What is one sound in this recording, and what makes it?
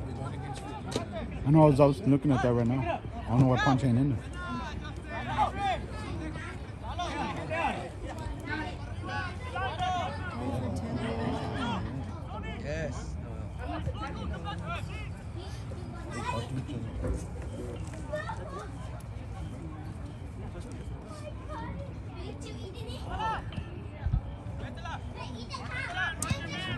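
Players shout to one another across an open field outdoors.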